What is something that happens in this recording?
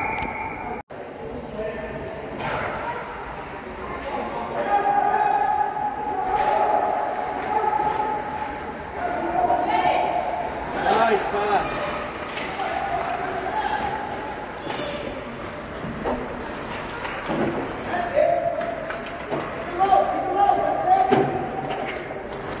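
Children shout and call out across an echoing rink.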